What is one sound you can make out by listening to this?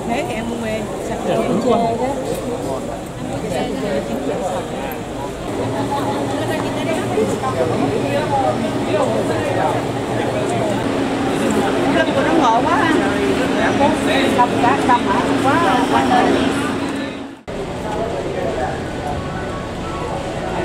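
Many people chatter and talk nearby outdoors.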